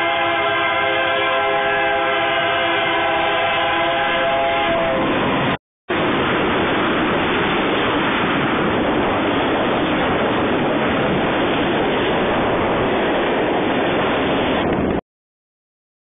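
A freight train rumbles and clatters loudly past close by.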